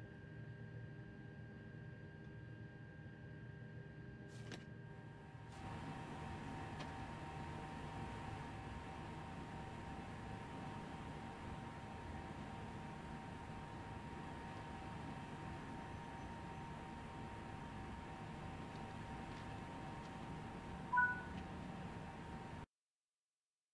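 A low electric hum drones steadily.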